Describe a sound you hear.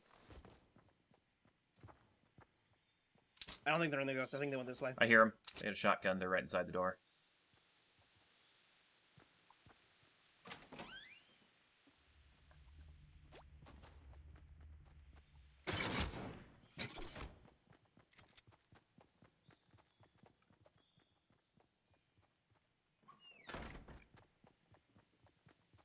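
Footsteps tread quickly on grass and wooden floors.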